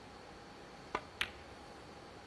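A cue tip strikes a snooker ball with a sharp click.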